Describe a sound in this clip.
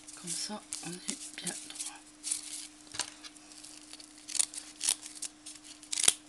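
Coarse fabric rustles and scrapes as it is handled.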